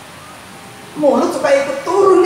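An elderly man speaks into a microphone over loudspeakers, with animation.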